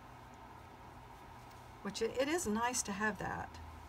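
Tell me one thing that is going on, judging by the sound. Cloth rustles softly.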